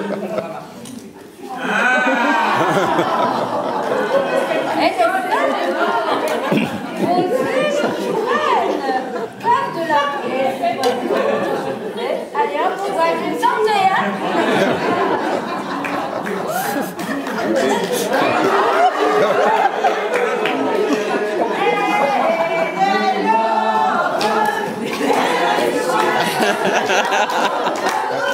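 Several women talk and chatter animatedly in a room with some echo.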